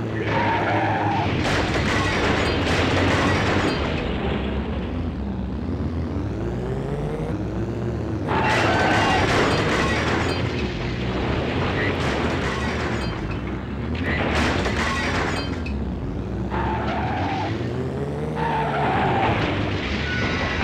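A racing car engine revs up and down, whining loudly.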